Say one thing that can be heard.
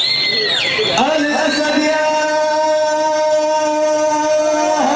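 A young man chants into a microphone, heard through a loudspeaker.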